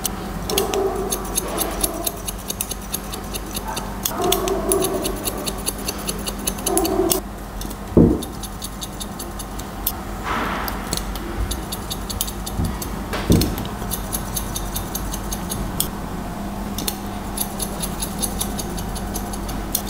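Scissors snip rapidly through hair close by.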